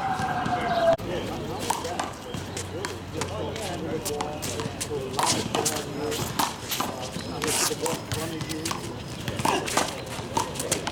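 A ball smacks against a wall, over and over.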